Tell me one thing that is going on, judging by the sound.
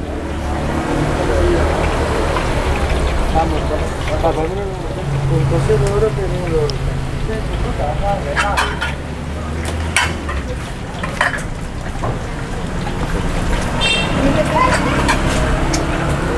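A wooden pestle grinds and knocks against a stone mortar.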